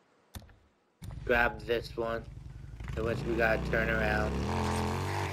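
A motorcycle engine rumbles steadily.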